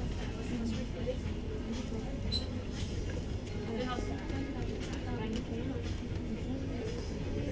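A coffee machine hums and pours a drink into a cup.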